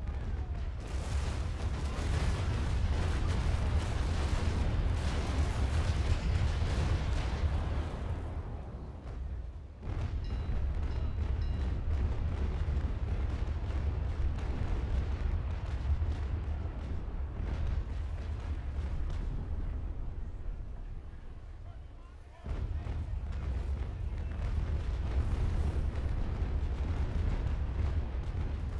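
Sea waves rush and splash against wooden hulls.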